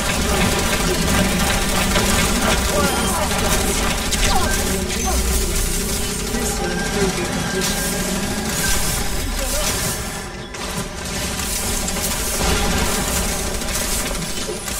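Rapid electronic gunshots crackle and zap.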